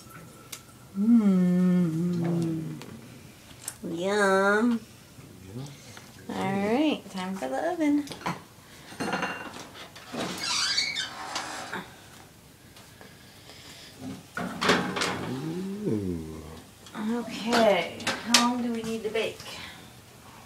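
A child talks excitedly nearby.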